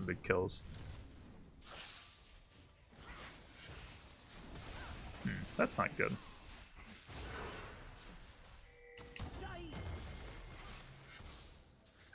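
Video game spell and hit effects crackle and whoosh.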